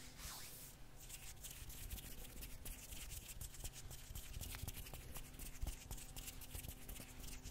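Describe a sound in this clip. Fingers tap and crackle close to a microphone.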